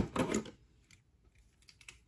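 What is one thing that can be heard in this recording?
Scissors snip.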